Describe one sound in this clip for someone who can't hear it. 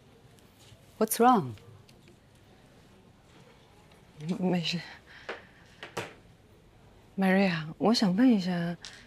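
A woman speaks in short, lively phrases nearby.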